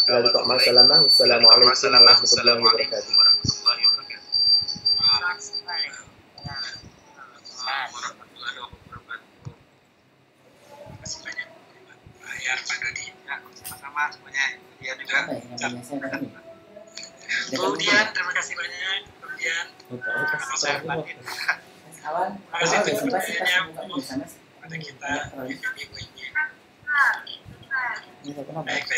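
Several adults talk and laugh over an online call.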